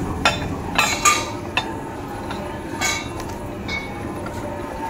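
Heavy metal pieces clank and knock together.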